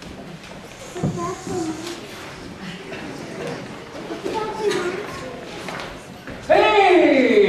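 Men speak in a large echoing hall.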